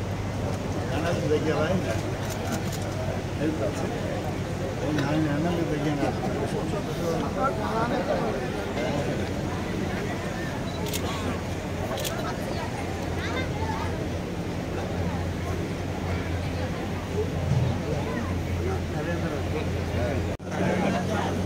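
A crowd of men chatters loudly outdoors.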